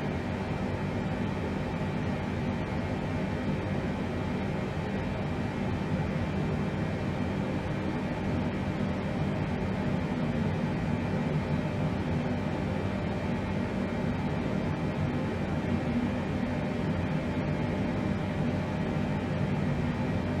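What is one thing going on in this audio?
An aircraft's engines drone steadily with a low rumble.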